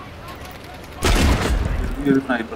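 An explosion booms close by.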